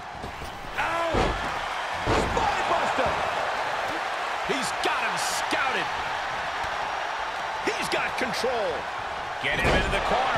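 Heavy thuds of wrestlers slamming onto a ring mat.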